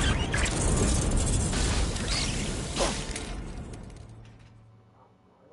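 A loud rushing roar of a fall swells and then fades away.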